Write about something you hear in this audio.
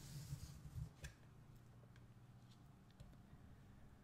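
A playing card is laid softly on a wooden table.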